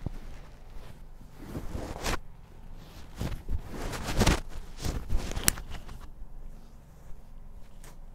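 Cloth rustles and rubs against a face.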